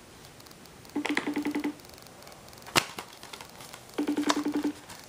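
A portable player plays a short beeping electronic tune through a small speaker.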